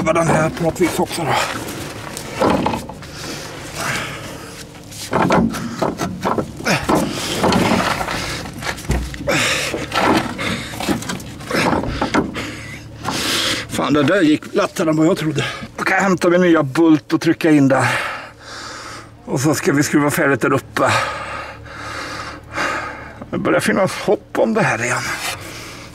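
Metal parts clink and knock as a hand works a car's suspension.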